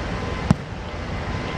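A ball is kicked with a thump.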